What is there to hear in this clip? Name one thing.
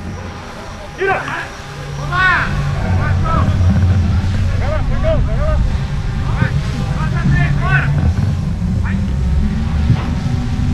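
Girls shout and call out across an open field.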